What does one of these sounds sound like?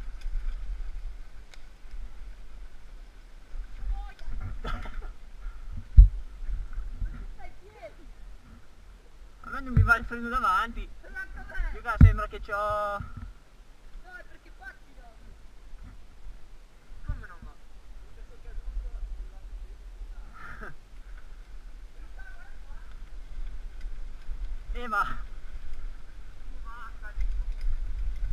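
Wind rumbles against a helmet as a bike rides downhill.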